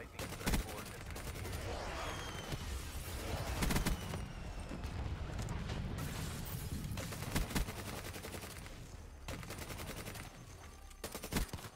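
Rapid gunfire bursts ring out with loud cracks.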